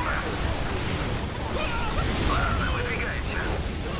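Explosions boom and rumble in a battle.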